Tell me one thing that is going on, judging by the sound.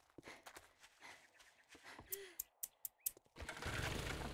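Footsteps tread on grass and pavement.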